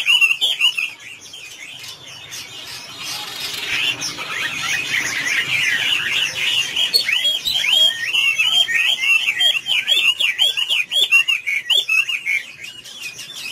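A songbird sings a loud, rapid, warbling song close by.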